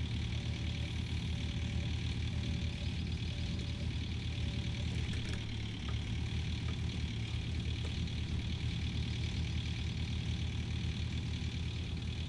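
A diesel excavator engine rumbles steadily.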